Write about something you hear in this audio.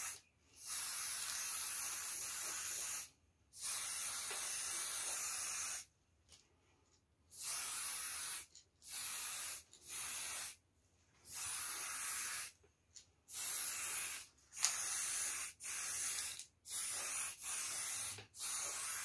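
A spray can hisses in repeated bursts, close by.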